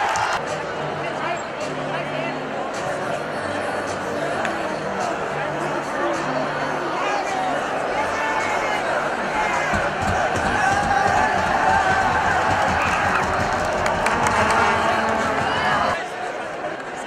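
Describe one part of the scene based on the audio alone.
A large crowd of young people cheers and shouts loudly in an echoing hall.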